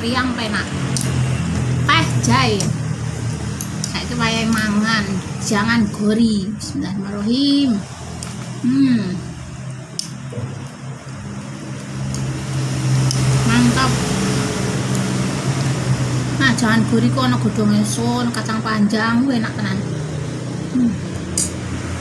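A middle-aged woman talks calmly and close by.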